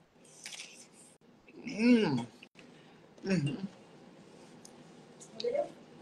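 A man crunches on crisp tortilla chips.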